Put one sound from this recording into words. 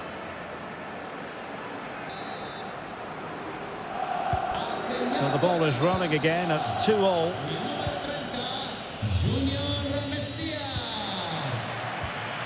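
A stadium crowd murmurs steadily.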